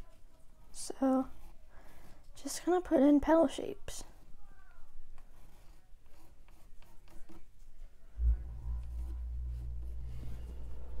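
A pencil sketches lightly on a stretched canvas.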